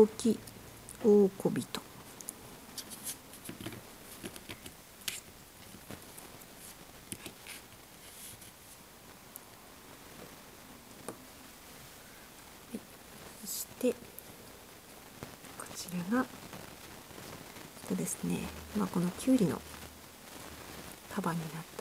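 Small rubber toys tap and click softly as fingers handle them.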